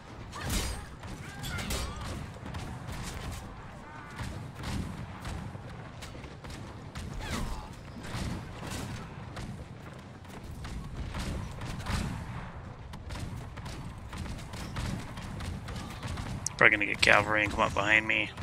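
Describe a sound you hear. Swords clash and thud in a fight.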